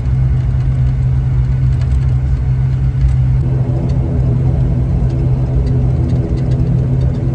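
An aircraft engine drones loudly and steadily from inside the cabin.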